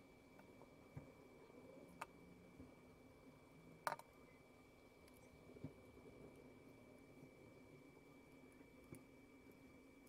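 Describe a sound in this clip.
Small knocks sound as hands handle a crocheted doll on a table.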